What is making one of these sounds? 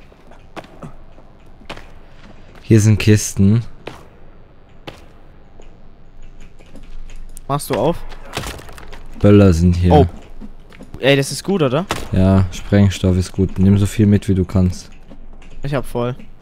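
Footsteps scuff over rocky ground.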